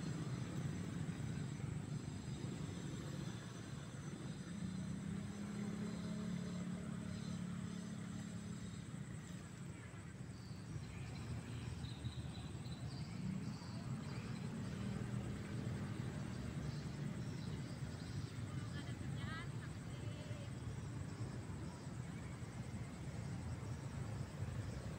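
Wind blows outdoors with a low steady rumble.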